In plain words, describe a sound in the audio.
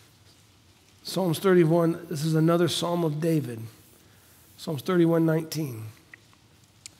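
A middle-aged man speaks calmly and slowly into a headset microphone.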